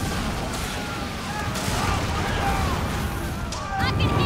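Cannons boom and explosions crackle.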